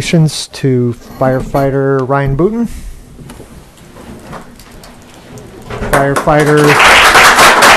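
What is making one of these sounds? A man speaks through a microphone in a room.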